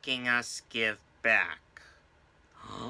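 A man speaks in a high, silly puppet voice with animation, close by.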